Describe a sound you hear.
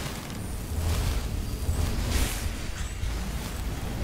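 A fiery spell bursts with a crackling roar.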